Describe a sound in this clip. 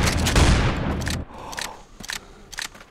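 Shells click into a shotgun as it is reloaded.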